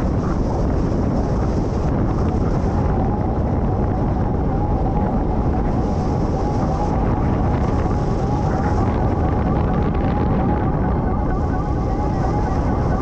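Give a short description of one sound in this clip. Strong wind roars steadily past the microphone.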